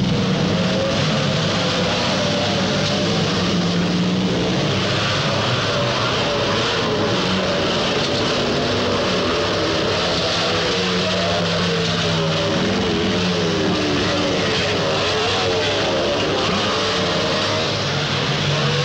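Motorcycle engines roar and rev as dirt bikes race past.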